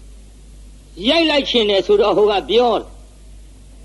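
A man chants slowly in a drawn-out, sing-song voice.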